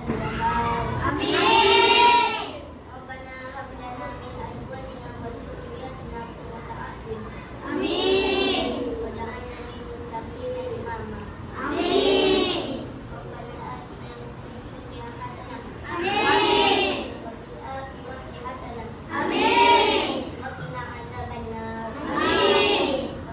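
A group of children sing together in loud bursts.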